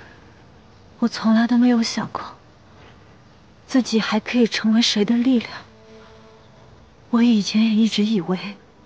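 A young woman speaks tearfully and close by.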